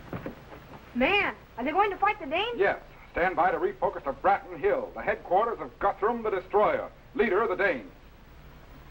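A man speaks earnestly to a boy, close by.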